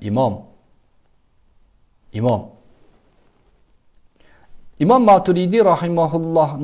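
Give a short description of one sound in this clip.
A man speaks calmly and close up through a clip-on microphone, in short bursts with pauses.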